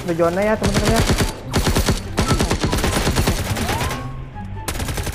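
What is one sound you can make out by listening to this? Rapid gunfire bursts crackle in quick succession.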